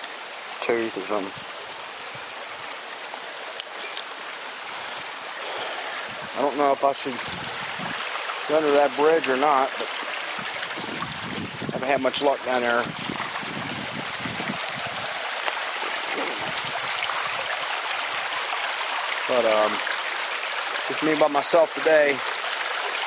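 Shallow water trickles and babbles over stones outdoors.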